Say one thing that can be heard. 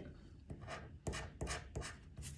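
A coin scrapes rapidly across a scratch card.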